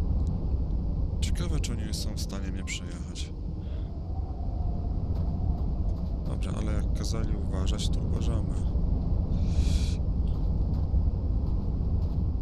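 A car engine rumbles low and steady while driving.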